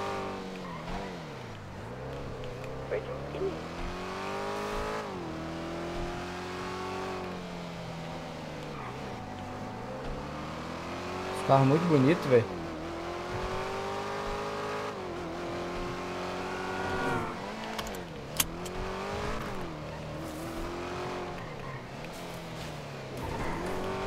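A car engine revs up through the gears and drops back between shifts.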